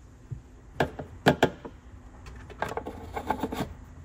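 A plastic filler cap clicks and twists shut.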